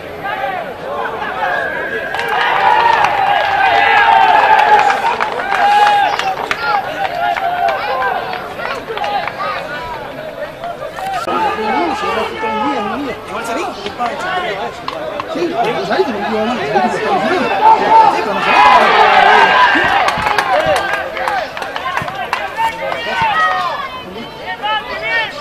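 Players and onlookers shout outdoors in the distance.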